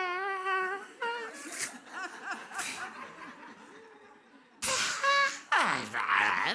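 A man laughs loudly through a microphone.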